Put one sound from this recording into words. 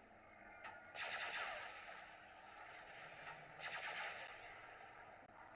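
Laser blasts and an explosion go off in a battle.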